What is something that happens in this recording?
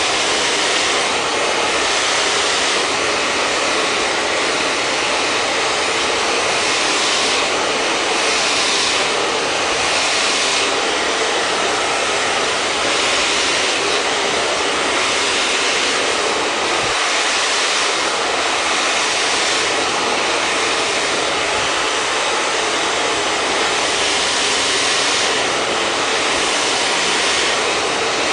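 A hair dryer blows air with a steady whirring roar, close by.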